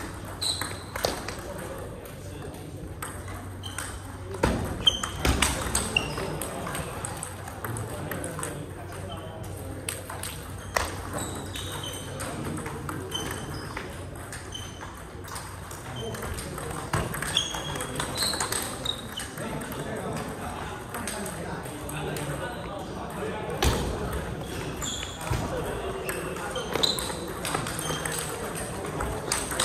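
Table tennis balls click sharply off paddles and tables in a quick rally, echoing in a large hall.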